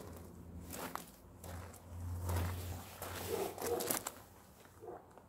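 Leaves rustle close by as they are brushed aside.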